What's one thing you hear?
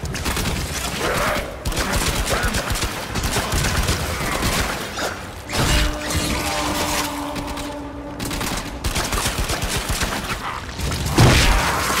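Blasts and energy bursts crackle and boom.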